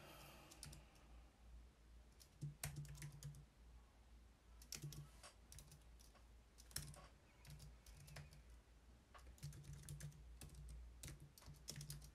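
Keyboard keys click quickly in short bursts of typing.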